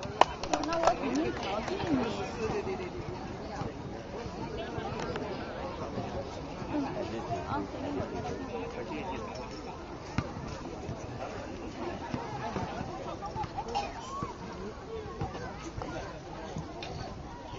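Several people chatter outdoors in the background.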